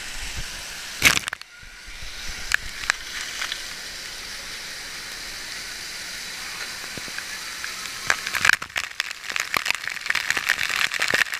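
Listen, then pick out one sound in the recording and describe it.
Water droplets patter and knock against a nearby surface.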